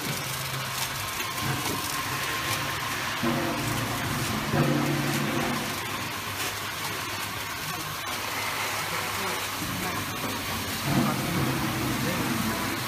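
Machine parts clatter and click rhythmically.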